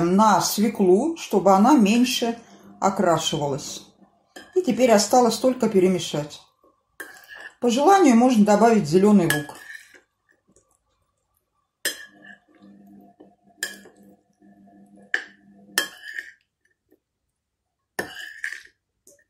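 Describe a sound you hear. A metal spoon clinks and scrapes against a plate.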